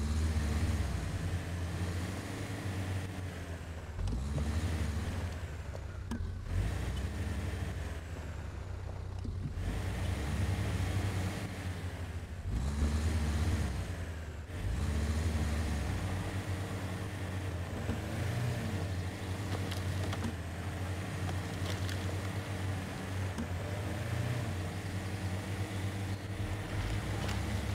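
Tyres crunch over rough rocky ground.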